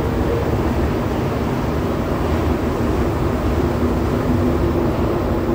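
A metro train rumbles steadily along the track, heard from inside the carriage.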